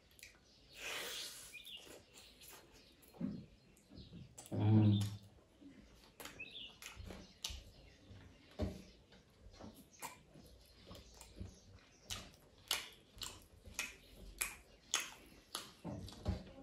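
A man chews food wetly close to the microphone.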